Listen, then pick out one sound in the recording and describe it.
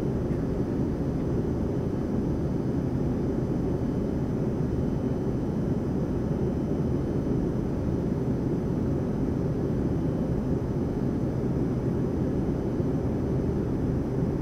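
Aircraft engines roar steadily in a low, constant rumble.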